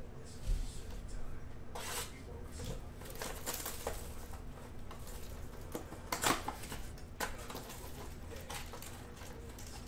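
Cardboard packaging rustles and tears as hands open a box.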